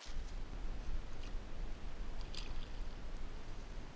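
A fish splashes in water.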